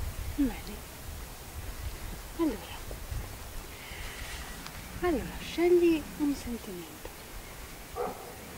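An elderly woman speaks cheerfully, close by.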